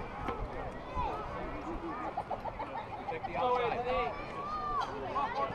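Young boys shout and cheer at a distance outdoors.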